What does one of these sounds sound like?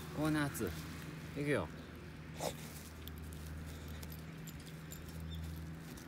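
A dog digs and scratches in loose soil.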